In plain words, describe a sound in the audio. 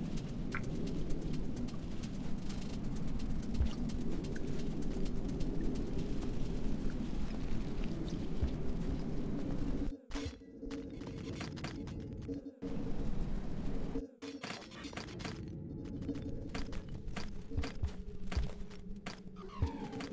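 A low, murky ambient hum drones on.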